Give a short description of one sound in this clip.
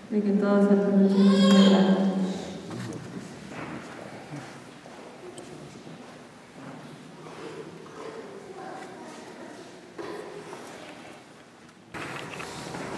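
A young woman speaks softly into a microphone in an echoing hall.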